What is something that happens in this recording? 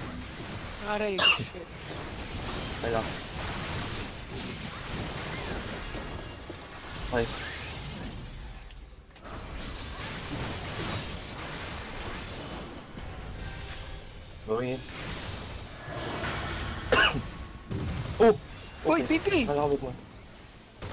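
Magical blasts whoosh and boom in short bursts.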